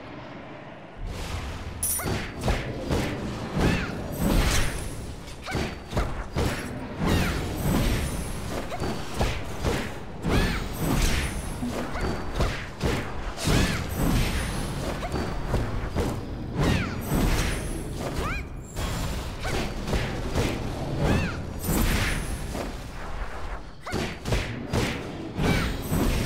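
Weapons clash and strike in a fast fight, with sharp hits and bursts.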